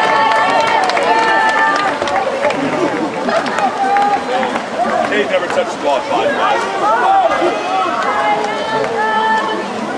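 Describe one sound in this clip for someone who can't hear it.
Players splash and thrash in a pool.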